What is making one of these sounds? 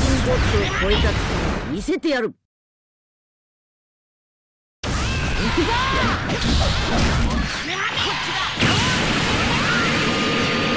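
An energy blast whooshes and crackles loudly.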